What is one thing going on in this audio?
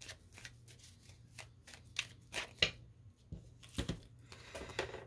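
Playing cards flick and rustle as they are shuffled by hand.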